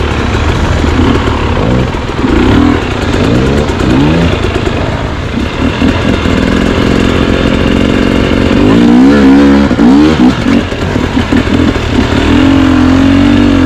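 A dirt bike engine idles and revs close by.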